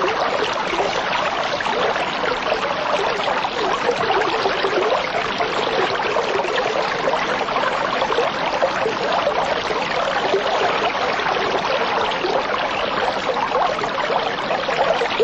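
Water bubbles and gurgles steadily in an aquarium.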